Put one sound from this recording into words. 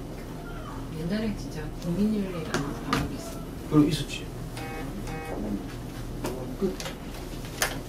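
A middle-aged man speaks calmly, close to a microphone.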